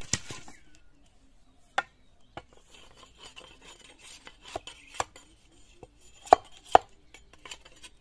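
A machete chops into bamboo with sharp knocks.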